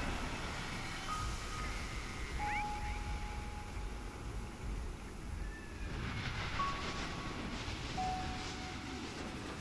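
Wind blows steadily and rumbles low outdoors.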